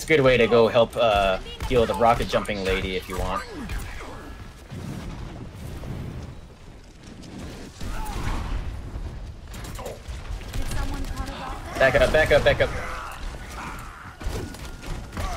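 Energy weapons buzz and crackle in a game battle.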